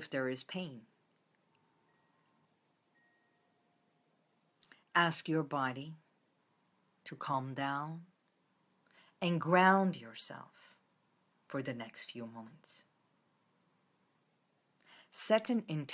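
A middle-aged woman speaks calmly and close by, in short phrases with pauses.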